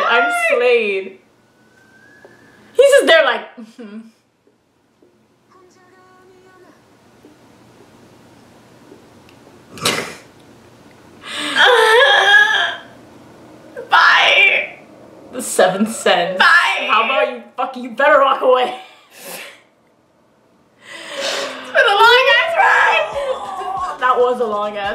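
A young woman talks excitedly close by.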